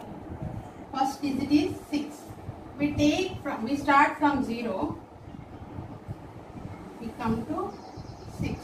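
A woman speaks calmly nearby, explaining.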